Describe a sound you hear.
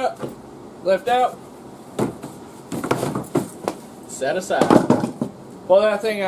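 A plastic seat knocks and rattles as it is lifted.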